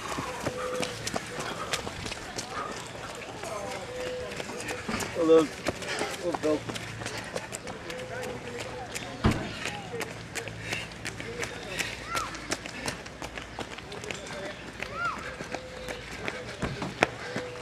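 Runners' footsteps slap on wet paving.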